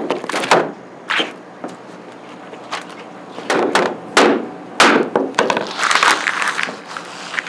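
Packing tape rips and crackles as it is pulled and pressed down.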